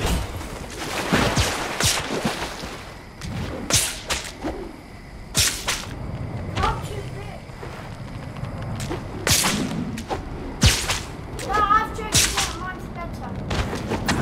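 Web lines shoot out with sharp whooshing snaps.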